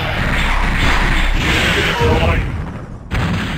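Video game laser blasts roar and crackle.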